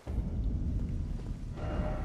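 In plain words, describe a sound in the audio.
Footsteps patter on a stone floor as a figure runs.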